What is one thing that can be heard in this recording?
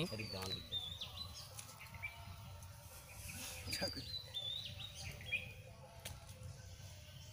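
A small tool scrapes and scratches in dry soil.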